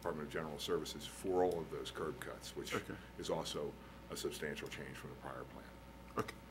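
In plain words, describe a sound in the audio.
A middle-aged man speaks into a microphone in a calm, formal way, heard through a room's sound system.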